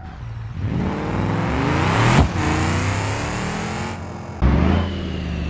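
A car engine revs up as the car pulls away.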